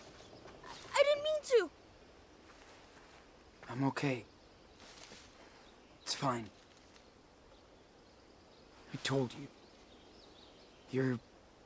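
A young man speaks in short bursts into a close microphone.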